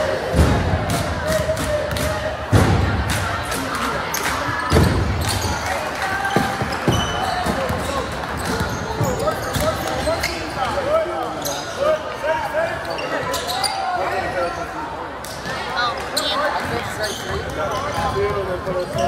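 A crowd of spectators chatters in a large echoing gym.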